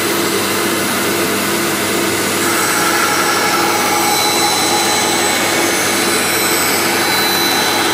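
A band saw blade cuts through a wooden board.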